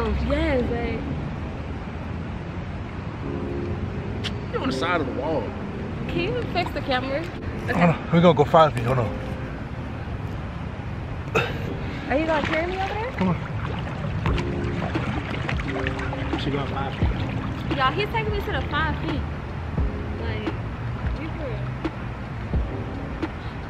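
Water splashes and laps in a pool.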